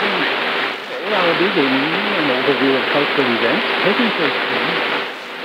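Warbling whistles wander up and down through a radio's static.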